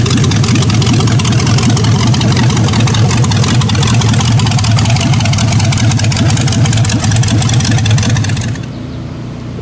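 A hot rod's engine rumbles loudly and crackles up close.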